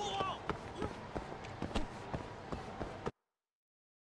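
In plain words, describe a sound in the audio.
Footsteps hurry along pavement.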